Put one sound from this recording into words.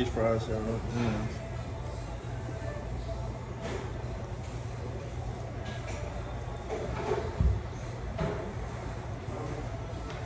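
A man chews food close to a microphone.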